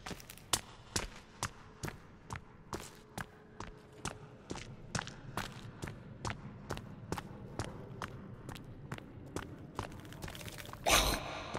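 Footsteps crunch steadily on rocky ground.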